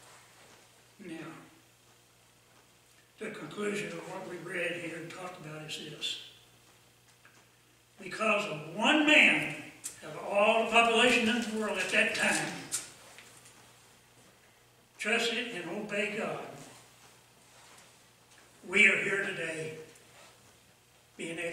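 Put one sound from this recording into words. An elderly man speaks calmly and earnestly into a microphone, with pauses between phrases.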